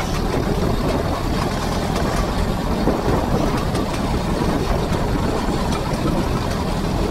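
A grass trimmer motor whirs steadily up close.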